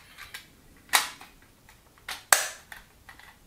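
Plastic parts click and snap together.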